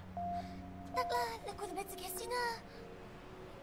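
A second young woman answers, laughing breathlessly.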